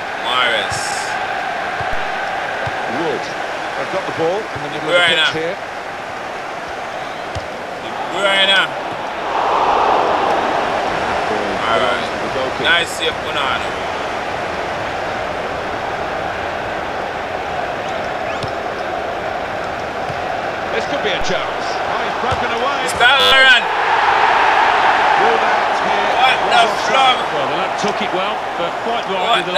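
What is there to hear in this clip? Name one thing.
A stadium crowd roars steadily, swelling louder at times.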